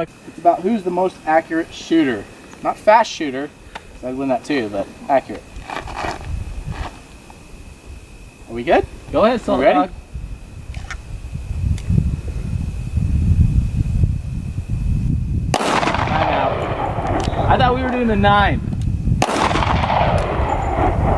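A man talks calmly outdoors nearby.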